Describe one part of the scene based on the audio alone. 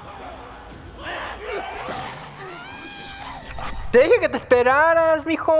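A girl screams in fright.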